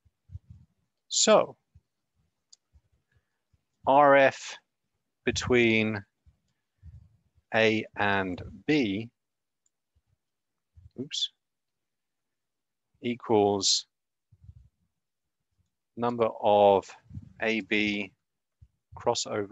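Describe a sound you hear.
A young man speaks in short bursts over a microphone, pausing often.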